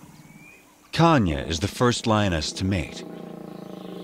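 A lion growls and roars loudly.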